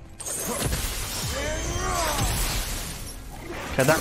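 Flames whoosh and roar in a burst.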